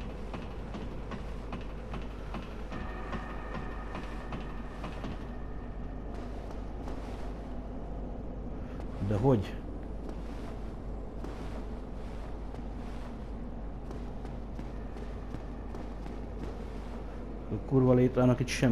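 Armoured footsteps clink and thud on stone.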